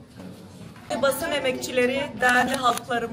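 A woman speaks clearly and calmly, close to a microphone.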